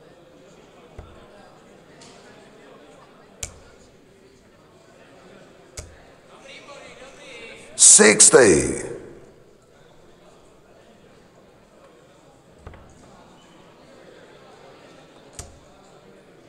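Darts thud into a dartboard one at a time.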